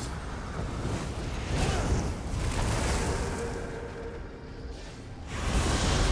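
Lightning bolts crackle in a game battle.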